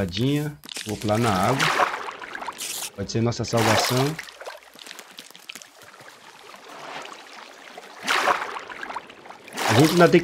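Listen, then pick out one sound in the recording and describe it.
Water splashes as a figure plunges in.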